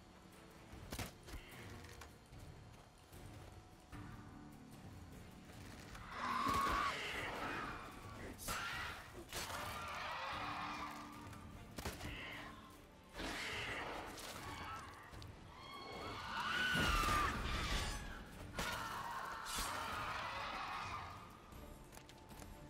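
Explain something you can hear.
Swords strike flesh with sharp slashes.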